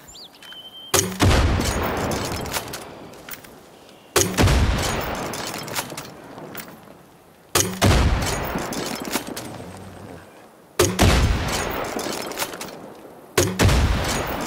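A heavy gun fires loud booming shots.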